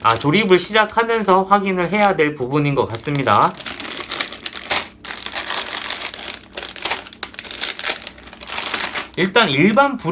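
Plastic bags crinkle and rustle.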